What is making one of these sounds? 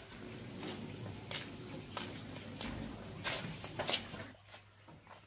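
Footsteps scuff on a gritty ground.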